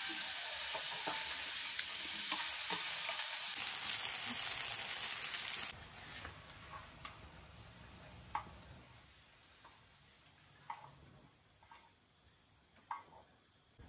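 Chopsticks scrape and tap against a metal pan.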